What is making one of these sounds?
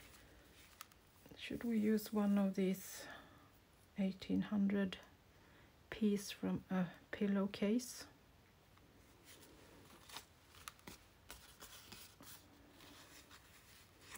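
Paper rustles and crinkles softly as hands handle it.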